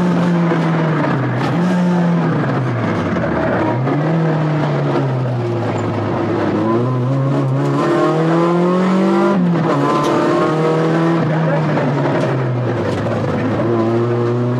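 A rally car engine drops in pitch as the car slows for corners.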